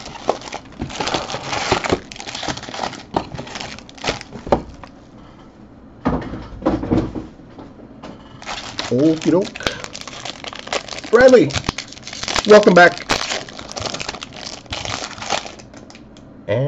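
Foil card wrappers crinkle and tear as hands open them.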